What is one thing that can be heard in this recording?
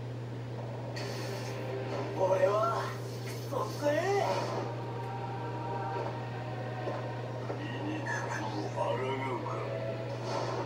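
Music and crackling battle effects play from a television speaker.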